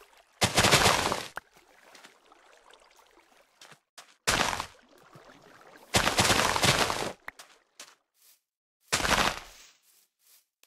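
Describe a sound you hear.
Plant stalks snap and break in short rustling bursts.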